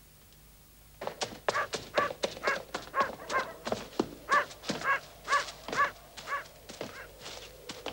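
Slow footsteps knock and echo on stone steps.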